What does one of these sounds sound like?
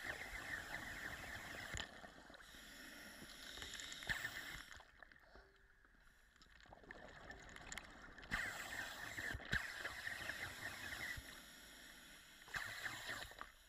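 Exhaled air bubbles rush and gurgle underwater in bursts.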